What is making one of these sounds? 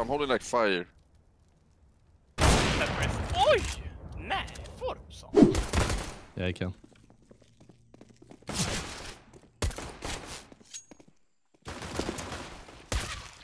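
A man talks with animation into a microphone.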